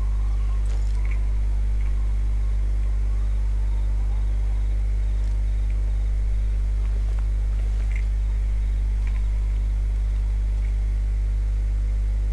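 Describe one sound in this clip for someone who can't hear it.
Soft footsteps shuffle on stone.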